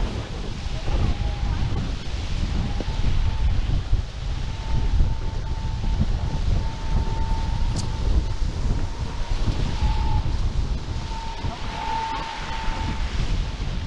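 Wind buffets the microphone in gusts.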